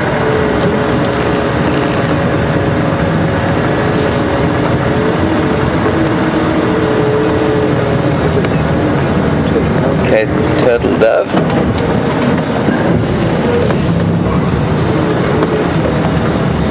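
A vehicle bumps and rattles over a rough dirt track.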